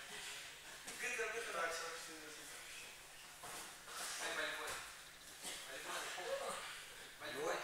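A man speaks loudly nearby in an echoing hall.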